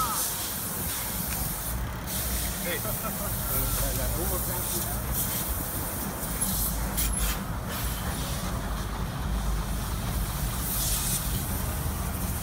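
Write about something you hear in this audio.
Traffic rumbles steadily along a road outdoors.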